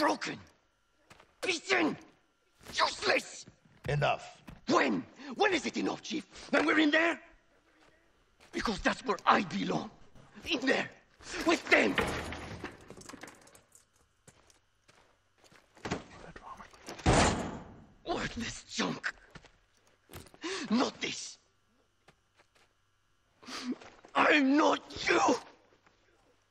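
A man speaks with strained emotion, close by.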